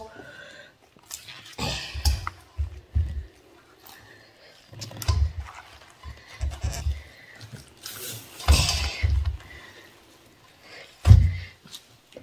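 Hands rub and squish wet cabbage leaves in a metal bowl.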